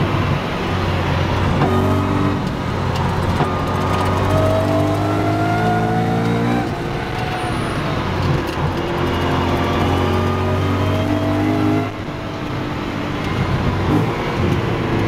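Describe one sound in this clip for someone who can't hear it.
A car engine roars loudly from inside the cabin, rising in pitch as it speeds up through the gears.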